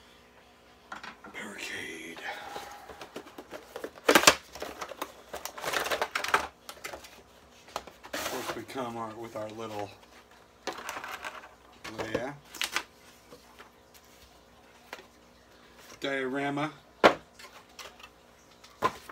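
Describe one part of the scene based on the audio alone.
Cardboard packaging rustles and scrapes as a box is opened.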